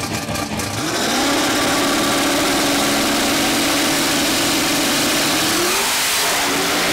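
A race car engine idles with a steady loud rumble.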